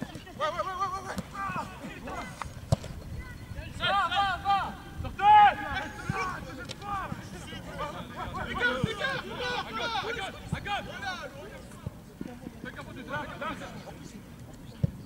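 Young men shout and call out across an open pitch.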